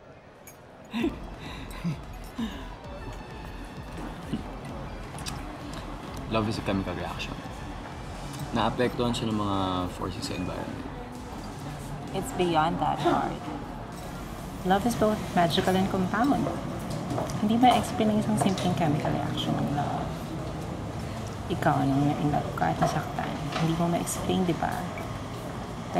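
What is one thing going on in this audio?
A young woman speaks softly and warmly close by.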